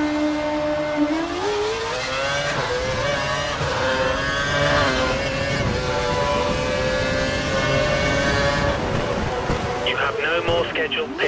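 A racing car engine revs up and screams as the car accelerates through the gears.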